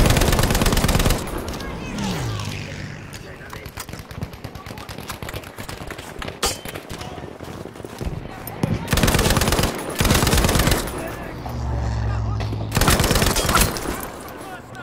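A machine gun fires in rapid, loud bursts.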